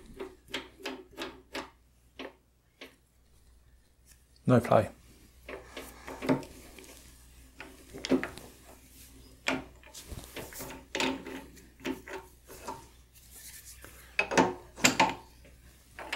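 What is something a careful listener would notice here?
A metal wrench clanks against metal.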